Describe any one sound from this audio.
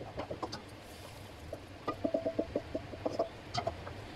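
A spatula scrapes food from a pan into a bowl.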